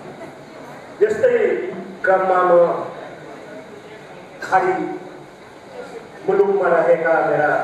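A man recites expressively into a microphone, heard through loudspeakers in a hall.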